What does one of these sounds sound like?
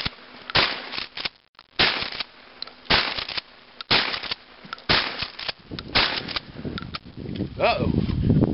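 Gunshots crack one after another outdoors, each echoing briefly.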